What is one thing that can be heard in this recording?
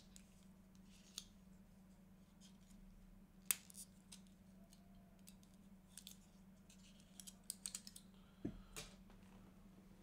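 Small objects click and tap close by.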